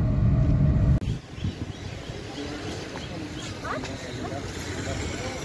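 Women talk nearby outdoors.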